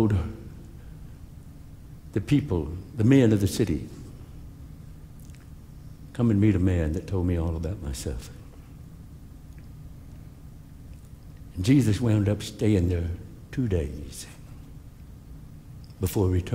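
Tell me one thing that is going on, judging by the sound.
An elderly man speaks slowly and with emphasis into a headset microphone, with pauses, in a large echoing hall.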